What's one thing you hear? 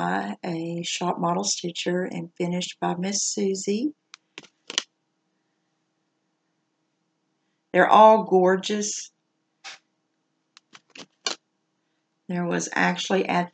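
A middle-aged woman talks calmly and close to a microphone, with pauses.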